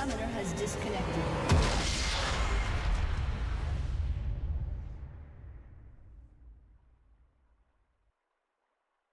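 Game combat sounds of spells and hits clash loudly, then fade away.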